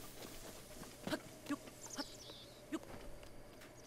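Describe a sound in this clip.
Hands and feet scrape while climbing a tree.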